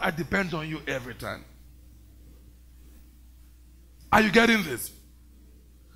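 A man preaches with fervour through a microphone, pausing between phrases.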